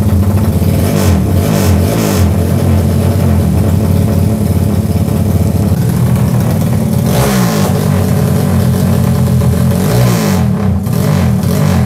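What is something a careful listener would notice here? A motorcycle engine revs up sharply a few times.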